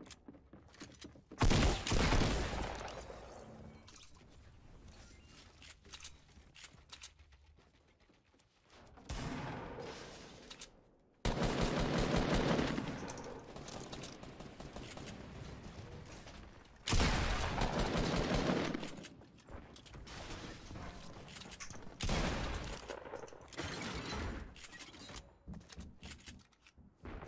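Footsteps patter quickly as a figure in a game runs.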